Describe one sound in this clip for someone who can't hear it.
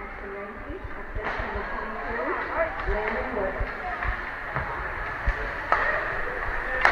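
Skate blades scrape and hiss on ice in a large echoing rink.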